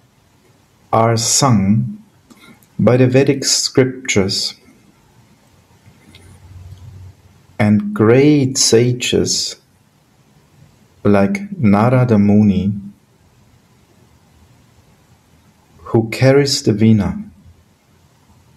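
A middle-aged man speaks calmly in short bursts, heard through an online call.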